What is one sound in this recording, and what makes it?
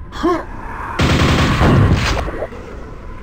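A game's super nailgun fires a rapid burst of nails.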